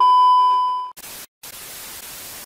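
Static hisses.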